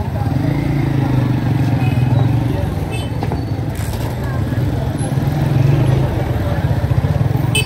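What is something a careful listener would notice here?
Motorbike engines hum as they ride past close by.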